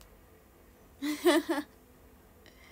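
A young woman laughs lightly.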